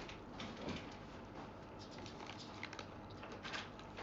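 A young woman crunches on snacks.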